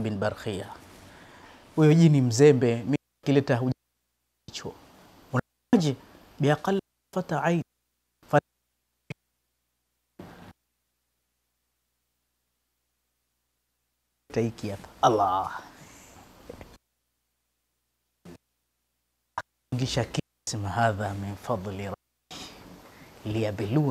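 A man speaks calmly and expressively into a close microphone, with pauses.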